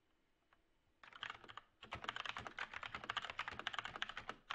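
Keys clatter rapidly on a keyboard.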